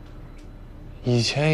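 A young man speaks nearby in a calm voice.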